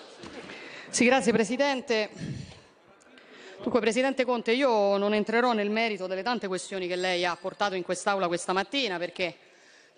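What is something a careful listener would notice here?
A woman speaks firmly into a microphone.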